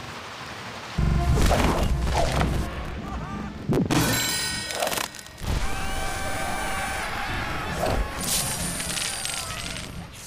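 Cheerful game music plays.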